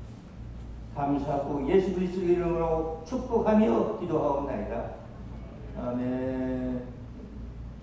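A man speaks solemnly through a microphone in a large echoing hall.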